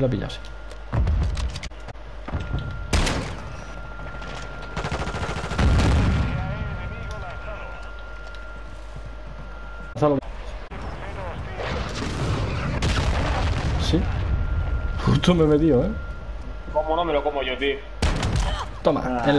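Gunshots boom loudly, one at a time.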